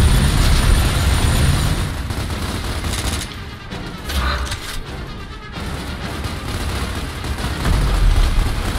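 Explosions boom and roar nearby.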